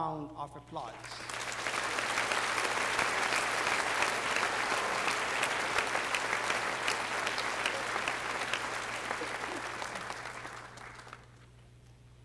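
A large audience applauds and cheers loudly, then fades.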